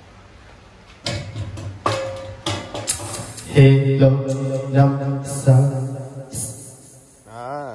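Karaoke music plays from laptop speakers.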